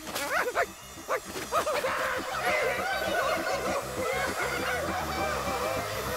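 A swarm of mosquitoes buzzes loudly.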